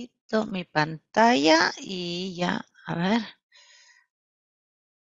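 A middle-aged woman speaks calmly through a headset microphone, as if on an online call.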